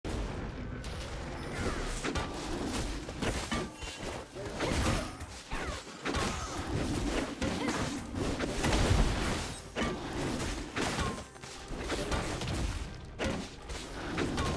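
Video game spells whoosh and crackle during a fight.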